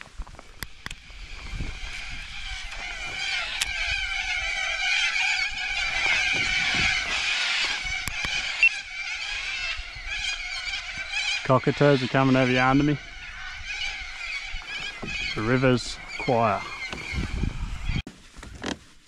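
A flock of birds screeches in the distance.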